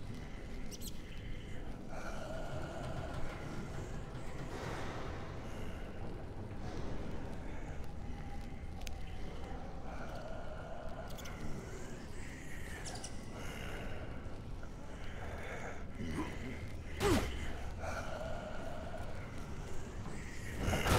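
A torch's flame crackles and roars steadily close by.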